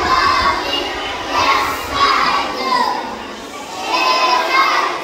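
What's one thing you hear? A group of young children sing together, close by.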